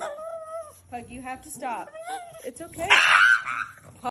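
A small dog howls and yowls.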